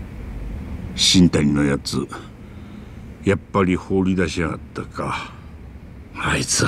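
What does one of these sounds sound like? An older man speaks in a questioning tone.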